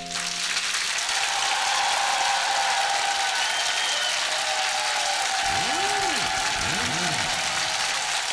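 A large audience applauds and cheers loudly in a big hall.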